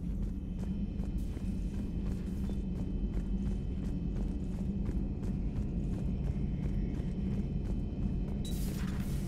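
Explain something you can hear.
A low engine hum drones steadily throughout.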